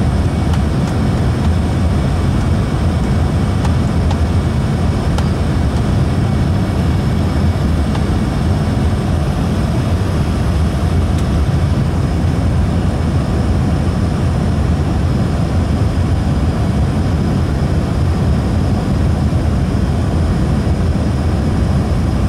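Aircraft engines roar steadily inside a cabin.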